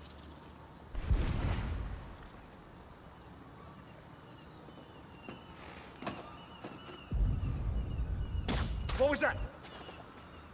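Heavy blows land with dull, booming thuds.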